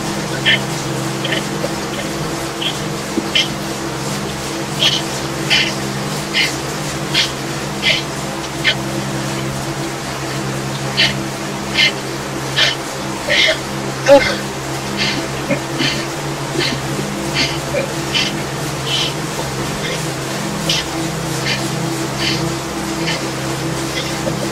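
A bike trainer whirs steadily as a rider pedals.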